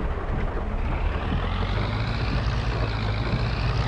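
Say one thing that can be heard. A tractor engine revs up, its pitch slowly rising.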